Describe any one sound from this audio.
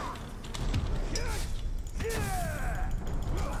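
A sword swishes and clangs in combat.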